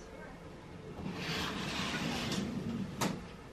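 Heavy curtains swish as they are pulled open.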